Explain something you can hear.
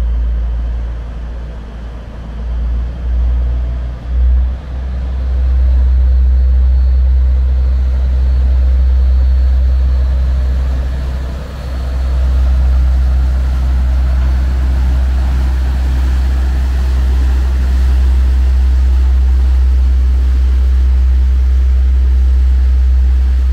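A barge engine rumbles low and steady.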